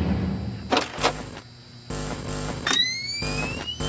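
Loud electronic static crackles and hisses.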